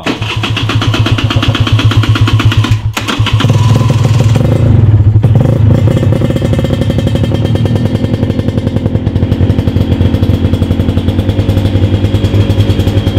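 A motorcycle engine idles loudly with a rapid, lumpy throb close by.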